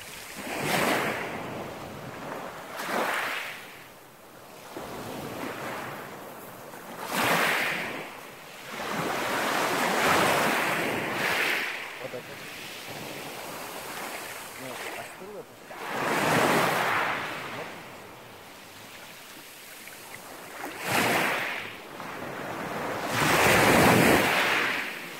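Small waves break and wash over pebbles on a shore, in rhythmic surges.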